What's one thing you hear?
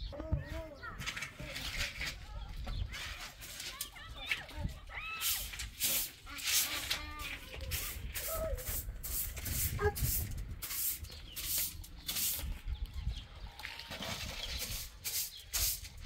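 A broom sweeps across a hard floor with quick, scratchy strokes.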